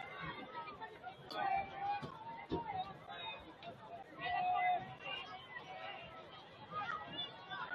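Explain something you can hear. A crowd of spectators chatters and calls out nearby in the open air.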